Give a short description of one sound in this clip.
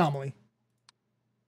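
A man speaks briefly and close to a microphone.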